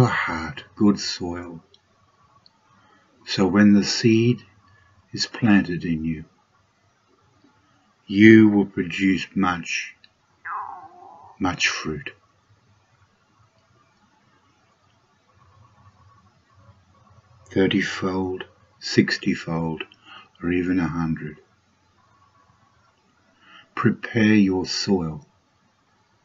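An elderly man speaks calmly in short phrases, close to the microphone, with pauses between them.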